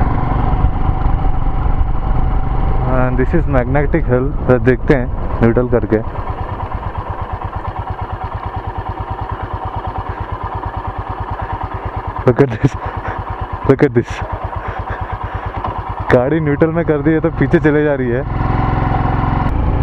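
A motorcycle engine hums and thumps steadily.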